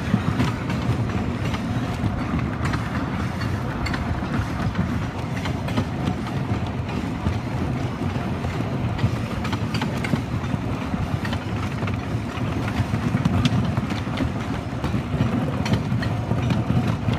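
A lift chain clanks and rattles steadily as a roller coaster car climbs.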